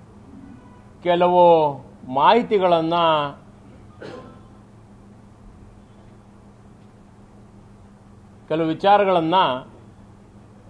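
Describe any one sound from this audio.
A middle-aged man speaks slowly into microphones, with long pauses.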